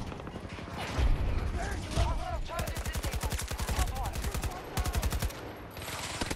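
Rapid automatic gunfire rattles in short bursts.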